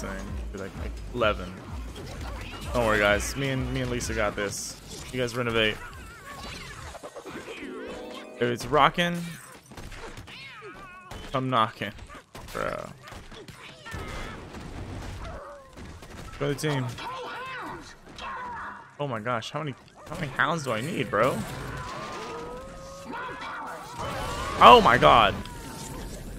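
Cartoon blows and blasts crash during a brawl.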